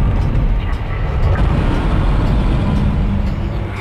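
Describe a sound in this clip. An electronic display switches on with a short chime.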